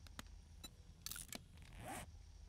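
A game menu clicks with short whooshing sounds as it switches.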